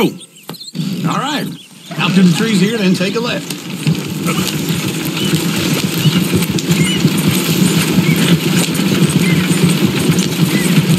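Wooden wagon wheels rumble and creak over a rough dirt track.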